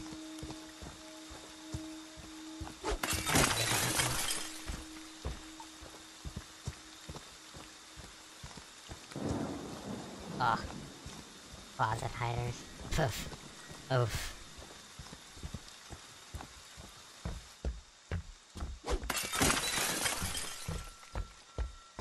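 Heavy footsteps thud steadily over the ground.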